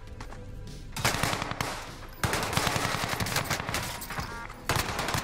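A machine gun fires rapid bursts at close range.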